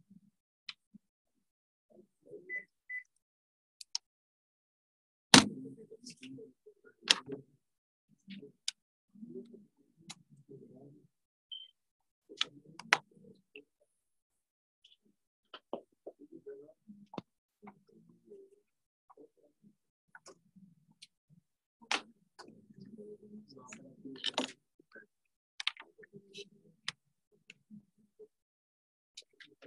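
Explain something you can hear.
Sharp clicks and knocks sound as a laptop and cables are handled.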